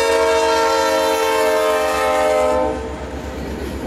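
A freight train rolls past on the tracks and quickly moves away.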